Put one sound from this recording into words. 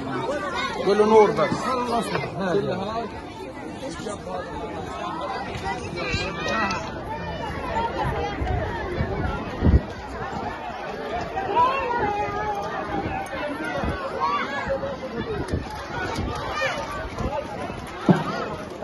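A crowd of men, women and children talks and calls out outdoors.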